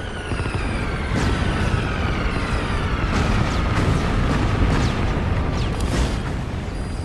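An explosion booms and rumbles in the distance.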